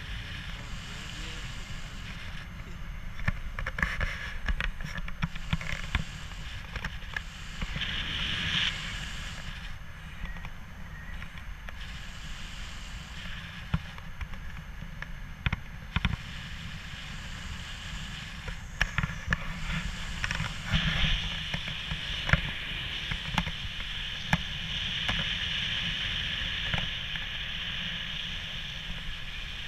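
Strong wind rushes and buffets the microphone outdoors.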